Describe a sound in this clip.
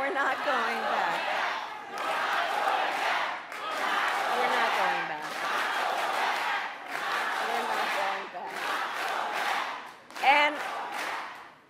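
A woman speaks with animation into a microphone in a large echoing hall.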